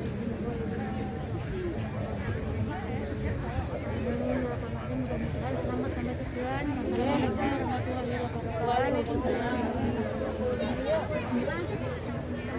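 Young women talk close by.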